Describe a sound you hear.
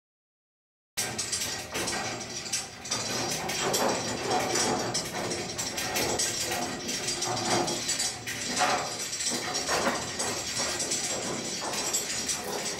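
A heavy metal machine part scrapes and creaks as it slowly shifts.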